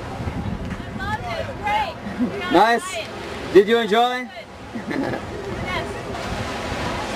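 A young woman speaks and laughs excitedly nearby.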